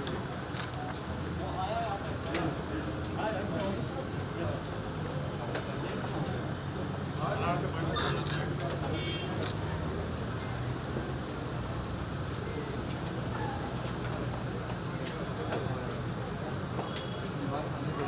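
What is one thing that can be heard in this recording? A crowd of men talks and murmurs close by.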